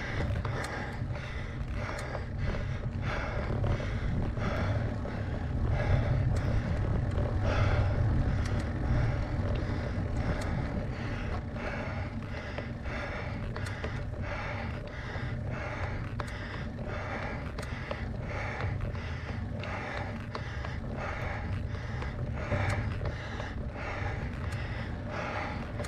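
Bicycle tyres roll on an asphalt road.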